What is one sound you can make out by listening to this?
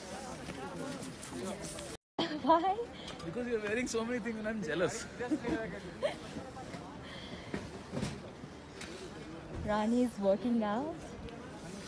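A young woman talks nearby.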